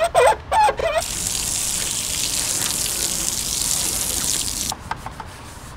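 Water sprays hard from a hose and splashes against a car.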